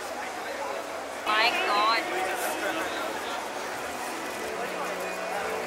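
A large crowd of men and women chatters and murmurs close by.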